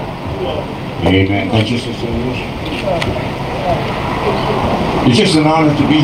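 A man speaks calmly through a handheld microphone and loudspeaker.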